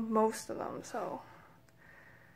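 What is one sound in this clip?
A young woman speaks close to a phone microphone.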